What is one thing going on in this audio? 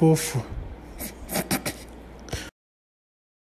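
A plush toy lets out a short growl.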